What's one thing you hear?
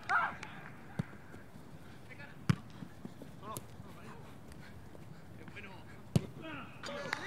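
A football is kicked hard outdoors.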